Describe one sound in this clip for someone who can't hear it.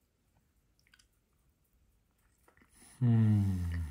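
A man chews food close by.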